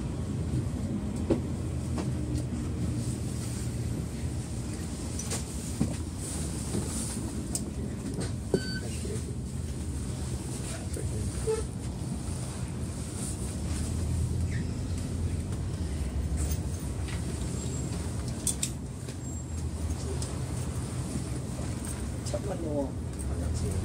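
Traffic rumbles steadily along a road outdoors.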